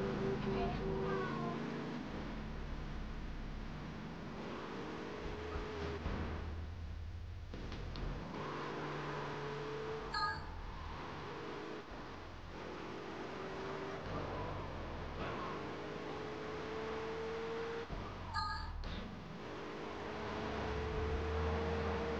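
A car engine roars and revs steadily.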